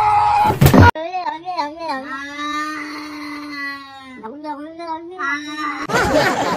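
A cat meows loudly in long, wavering cries.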